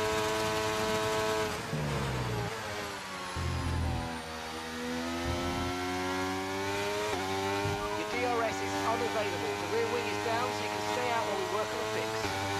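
A racing car engine whines steadily, rising and dropping in pitch as it shifts gears.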